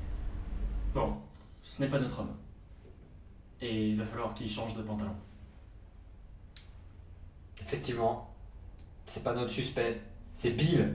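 A second young man answers calmly and close by.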